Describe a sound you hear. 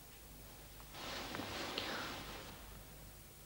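A young woman gasps softly, close by.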